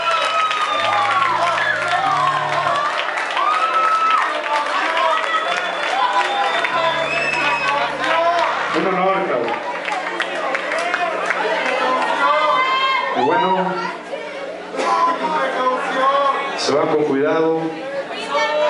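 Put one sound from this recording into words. A man sings into a microphone over the music.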